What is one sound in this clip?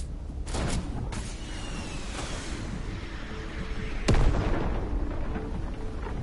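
Building pieces clatter and thud into place.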